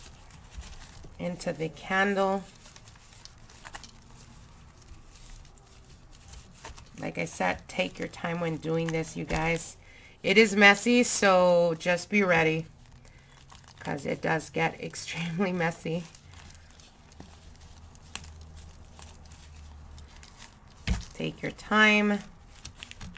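Gloved hands rustle and crinkle.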